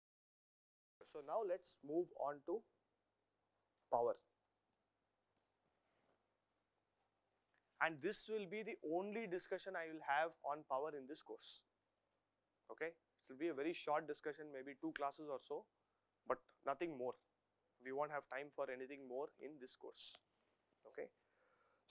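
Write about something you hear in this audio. A man speaks calmly and explains, close to a microphone.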